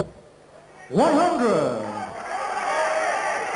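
A man calls out a score loudly through a microphone, drawing out the words.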